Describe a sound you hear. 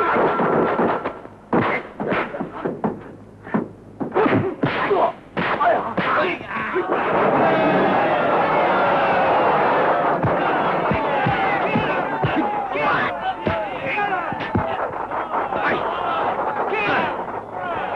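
Punches and blows land with sharp slaps.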